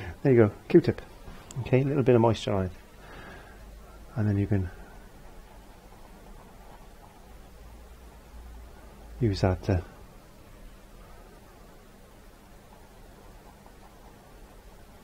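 A paintbrush dabs and strokes softly on canvas.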